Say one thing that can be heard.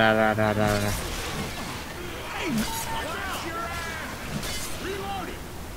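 Heavy blows land with wet, splattering thuds.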